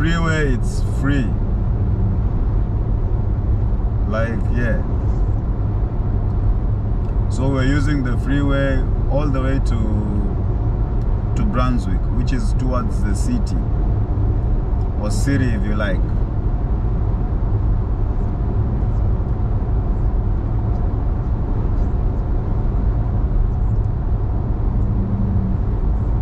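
Tyres roar steadily on a motorway inside a moving car.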